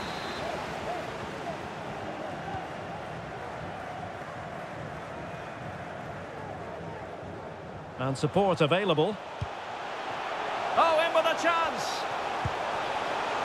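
A large stadium crowd murmurs and chants steadily in the distance.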